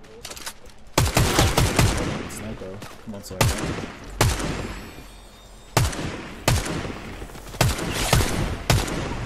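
A sniper rifle fires loud, sharp shots.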